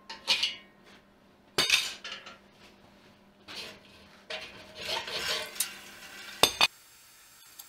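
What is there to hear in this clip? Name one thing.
Metal clanks as it is handled.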